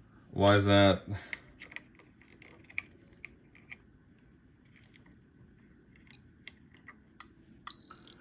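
Small metal test clips click against components.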